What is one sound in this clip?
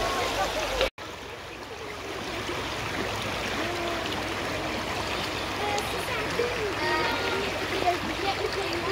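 Children chatter and call out nearby.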